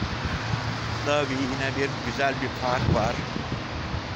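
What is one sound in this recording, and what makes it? An elderly man speaks calmly close to the microphone.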